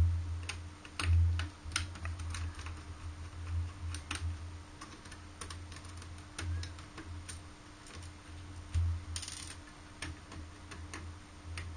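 A small screwdriver scrapes and clicks against a plastic part.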